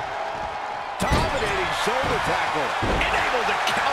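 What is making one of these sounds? Heavy thuds ring out as wrestlers slam onto a ring mat.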